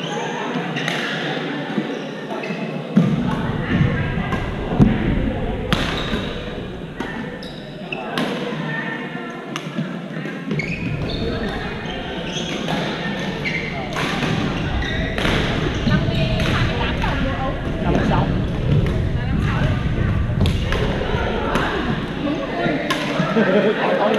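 Shoes squeak and thud on a hard court floor.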